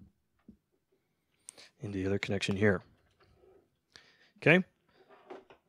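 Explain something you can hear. A cable plug clicks into a jack.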